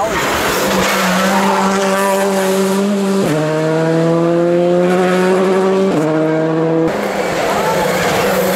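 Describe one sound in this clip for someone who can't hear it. A rally car engine roars loudly and revs up through quick gear changes as it speeds past.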